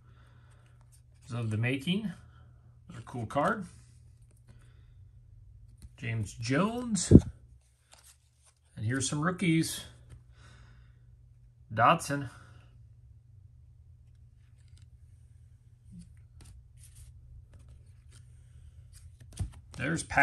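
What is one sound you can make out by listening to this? Trading cards slide and flick against each other in someone's hands.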